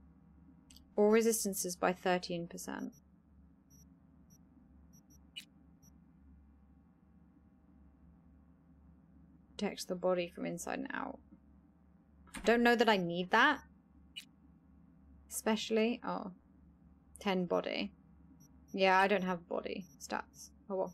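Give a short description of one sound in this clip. A young woman talks calmly into a close microphone, in short bursts.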